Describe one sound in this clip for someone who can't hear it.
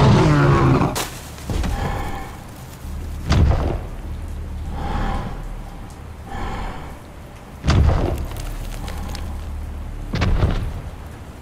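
Heavy footsteps thud and shake the ground.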